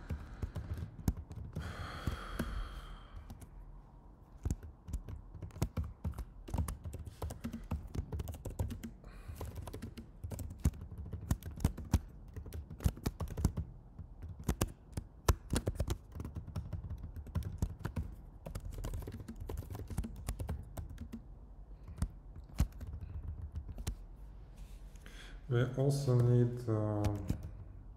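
A man types rapidly on a keyboard close by.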